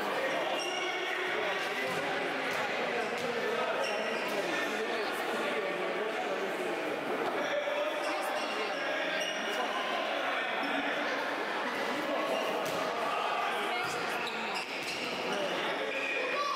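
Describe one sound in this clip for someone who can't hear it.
A futsal ball is kicked and bounces on a hard court.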